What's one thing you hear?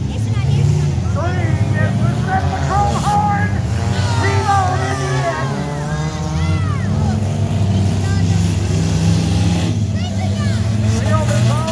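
Tyres squeal on dirt as cars spin.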